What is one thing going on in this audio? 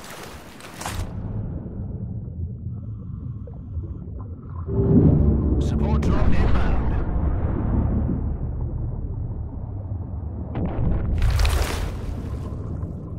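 Water churns and bubbles underwater with a deep, muffled rumble.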